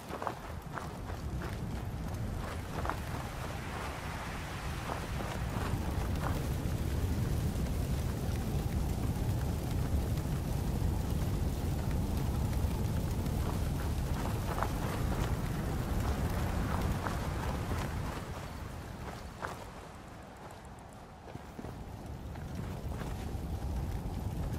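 Fire crackles and roars steadily nearby.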